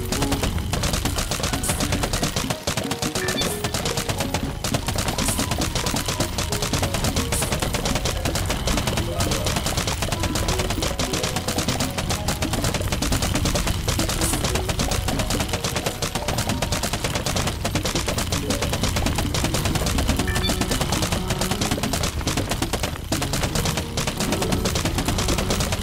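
Rapid thuds of melons being lobbed and splattering pile up without a break.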